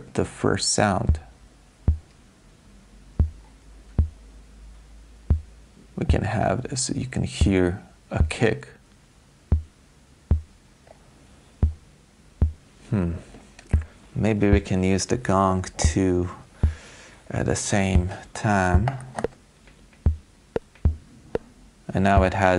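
An electronic synthesizer ticks out sharp clicks in an uneven, repeating beat.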